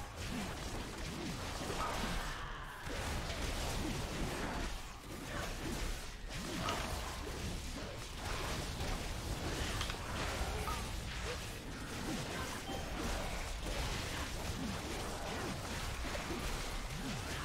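Magic spells whoosh and burst in a fast fight.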